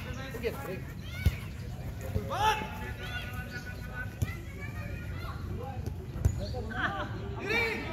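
Men shout and call out to each other outdoors during play.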